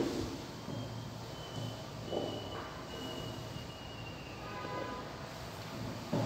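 A ruler taps and scrapes against a chalkboard.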